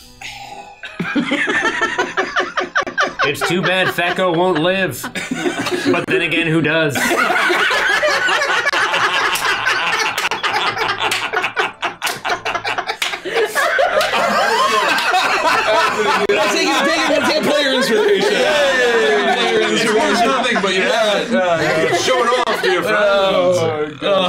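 Several adults laugh loudly together over microphones.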